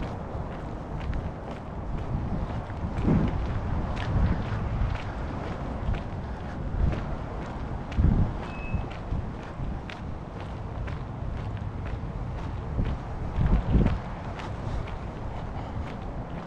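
Tyres hiss softly on a wet road.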